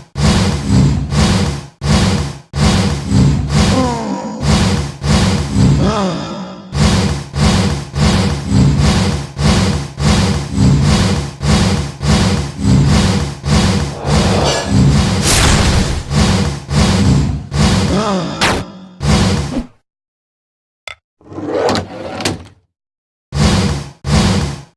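Rapid electronic blaster shots fire in a steady pulsing beat.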